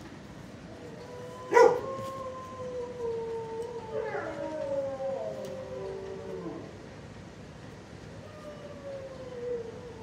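A dog whines in long, high, wavering cries.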